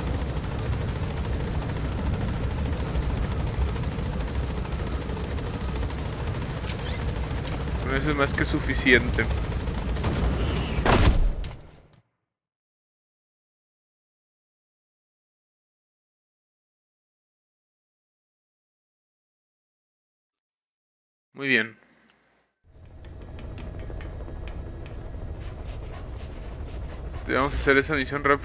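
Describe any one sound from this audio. A helicopter's engine and rotor roar loudly and steadily.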